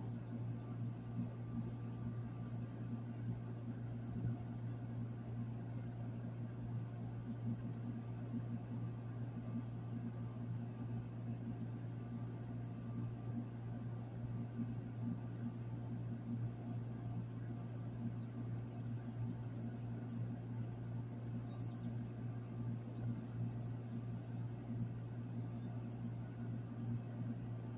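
An outdoor unit hums steadily at close range, with a low droning rattle.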